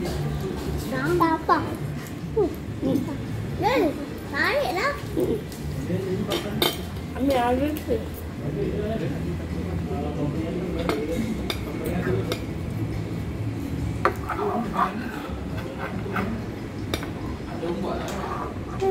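Young children talk and call out close by.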